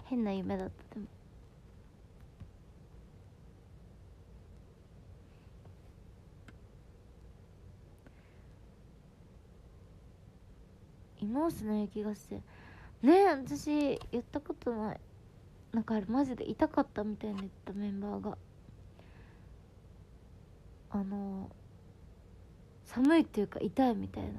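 A young woman speaks softly and close to a microphone, in short bursts.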